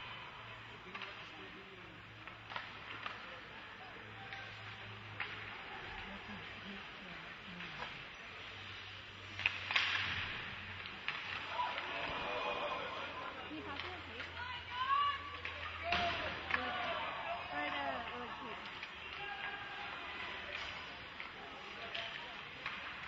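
Sticks clack sharply against a puck in an echoing rink.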